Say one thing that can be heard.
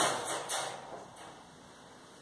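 A wire dog crate door rattles shut.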